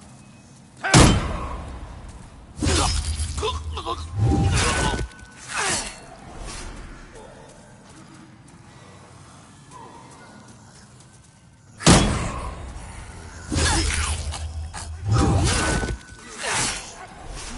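A heavy blade strikes with a sharp metallic clang.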